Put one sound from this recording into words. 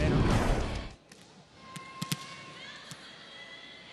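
A volleyball bounces on a hard court floor.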